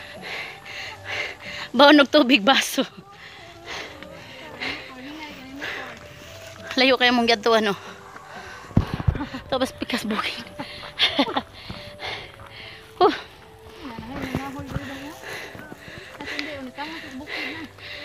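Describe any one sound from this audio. A young woman talks with animation close to the microphone, outdoors.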